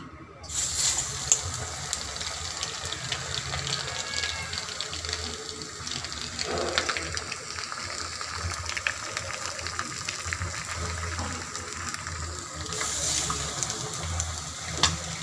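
Hot oil sizzles and crackles loudly.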